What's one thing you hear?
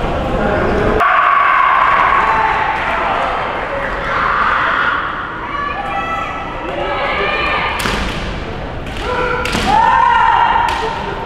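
Young fencers shout sharp, drawn-out battle cries in a large echoing hall.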